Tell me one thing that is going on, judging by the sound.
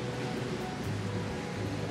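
Small waves lap against rocks.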